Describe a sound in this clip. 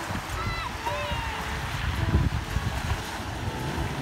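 A car engine hums as a vehicle drives through water.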